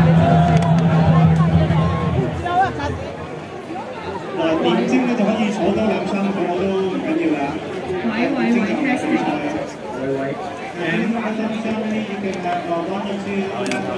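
A middle-aged woman talks close to the microphone.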